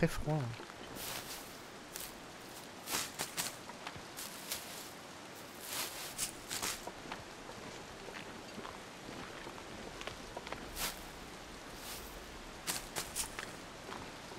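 Footsteps crunch on snow and ice.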